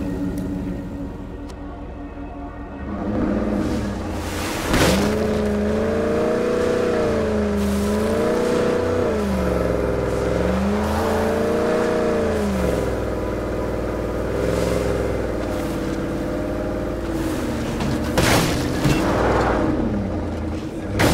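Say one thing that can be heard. A truck engine rumbles and revs up and down as it drives.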